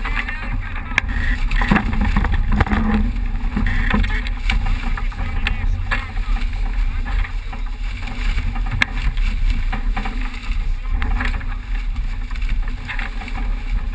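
Strong wind roars across the microphone.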